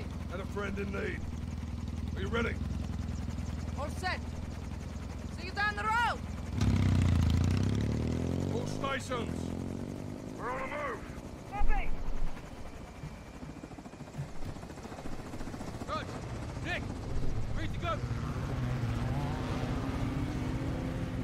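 A helicopter's engine and rotor drone steadily nearby.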